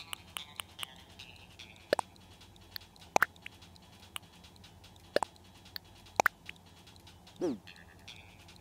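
Short menu clicks and blips sound in quick succession.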